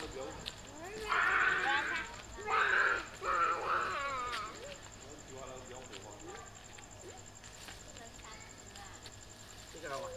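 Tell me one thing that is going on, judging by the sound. Children shout and squeal excitedly outdoors.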